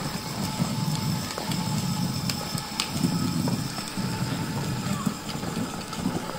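Small plastic wheels rumble and crackle on the rough road.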